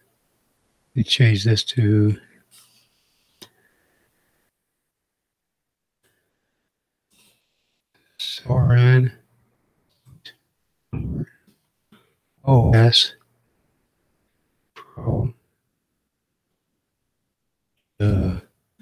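An elderly man speaks calmly in short bursts, close to a microphone.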